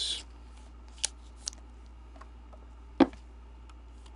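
A hard plastic card case clicks and taps.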